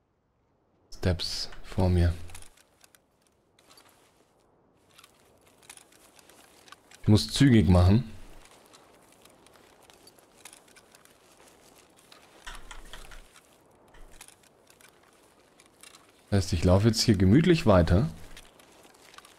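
A man talks close into a microphone.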